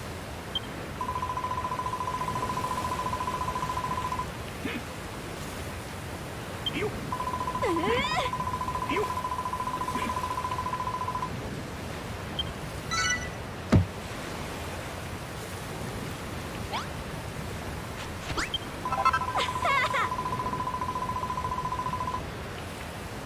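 A steady electronic beeping tone sounds as dialogue text types out.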